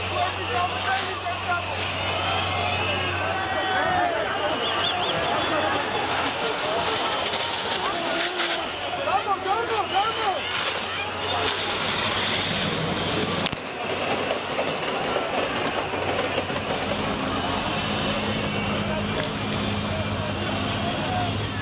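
A crowd shouts and whistles outdoors.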